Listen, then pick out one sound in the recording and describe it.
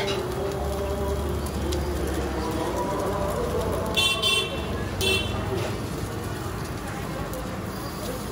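Voices chatter in a busy street crowd.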